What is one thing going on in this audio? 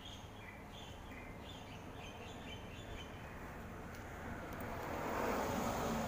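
A small dog sniffs at plants close by.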